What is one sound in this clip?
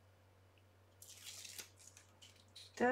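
A strip of paper rustles as hands handle it.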